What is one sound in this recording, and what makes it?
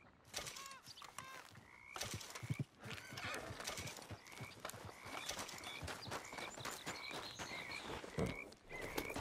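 Footsteps crunch on a dry forest floor.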